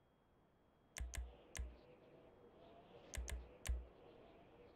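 Short electronic menu clicks sound as options are selected.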